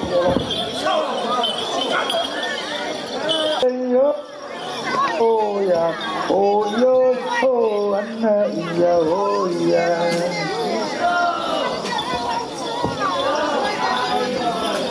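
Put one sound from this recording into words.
A crowd of men and women shouts and talks over one another outdoors.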